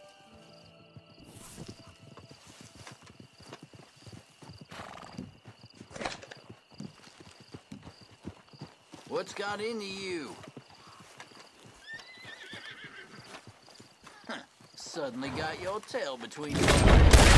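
Footsteps crunch through dry brush.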